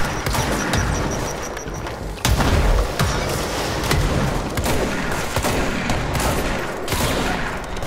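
Debris and objects clatter and smash.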